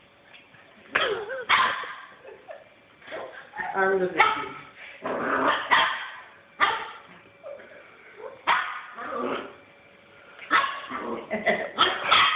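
A puppy barks and yips playfully, close by.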